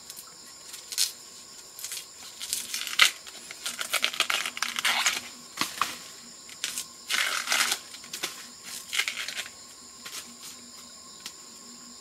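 Dry bamboo leaves rustle and crunch underfoot.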